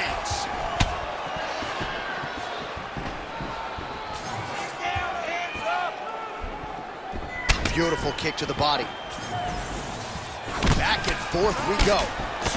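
Kicks land with sharp thuds.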